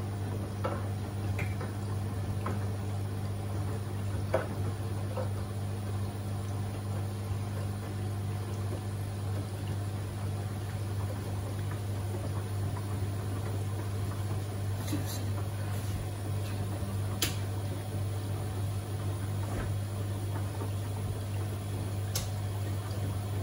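Clothes thump softly against a washing machine drum.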